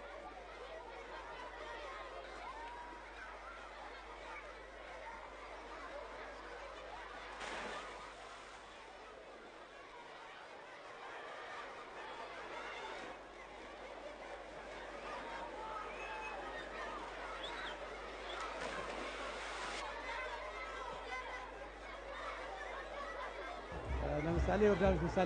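A large crowd of children shouts and cheers outdoors.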